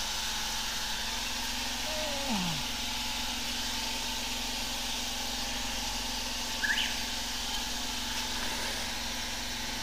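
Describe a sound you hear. A stiff hose scrapes and knocks against a drain box.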